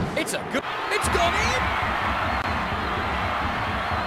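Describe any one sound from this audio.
A crowd cheers loudly after a goal.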